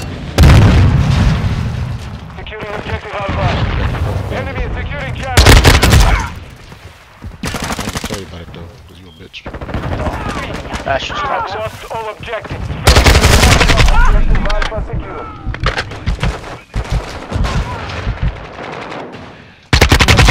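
A rifle fires rapid bursts of shots close by.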